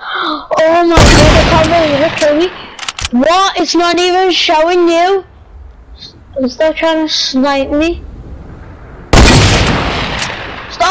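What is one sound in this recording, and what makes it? A gun fires two loud shots.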